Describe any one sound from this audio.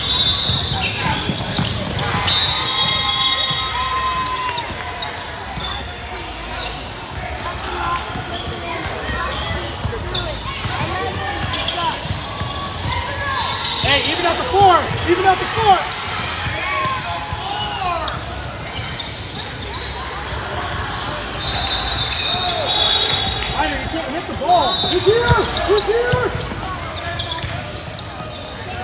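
Young players and spectators call out and chatter in a large echoing hall.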